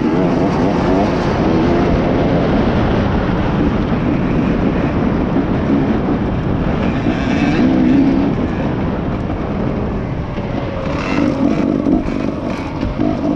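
A dirt bike engine revs and drones close by.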